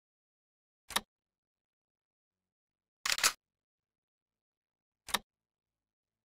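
Soft menu clicks sound now and then.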